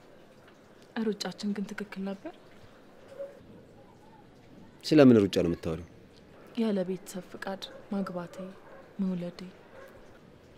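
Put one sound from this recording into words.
A young woman speaks quietly and sadly, close by.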